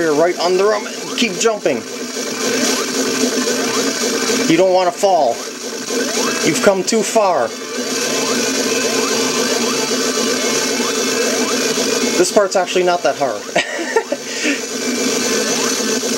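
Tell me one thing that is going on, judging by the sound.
Upbeat electronic video game music plays steadily through a small television speaker.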